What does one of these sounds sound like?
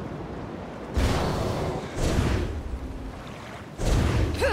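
A magic spell crackles and bursts loudly.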